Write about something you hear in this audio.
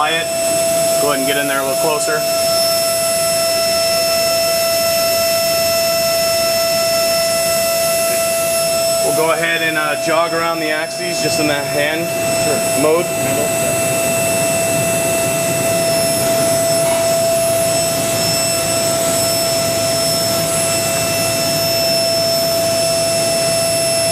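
A machine hums with a steady high whine.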